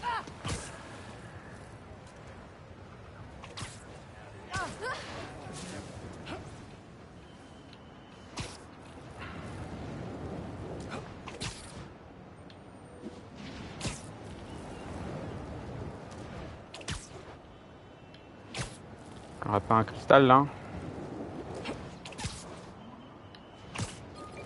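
Web lines shoot out with sharp, repeated thwips.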